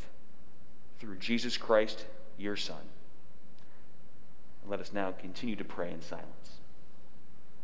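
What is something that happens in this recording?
A young man reads aloud calmly in a large echoing room.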